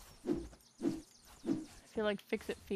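Footsteps thud softly on grass at a steady walking pace.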